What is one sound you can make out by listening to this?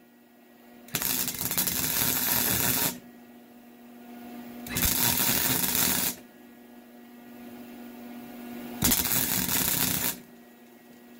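An arc welder crackles and buzzes in short bursts.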